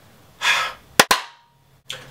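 A young man claps his hands sharply.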